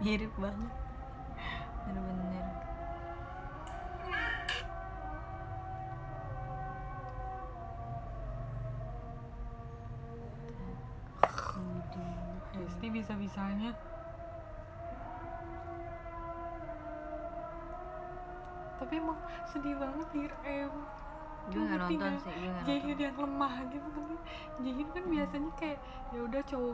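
A young woman sings softly close by, heard through a phone microphone.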